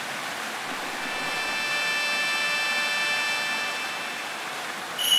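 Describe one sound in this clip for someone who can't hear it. A bright ringing chime sounds and fades.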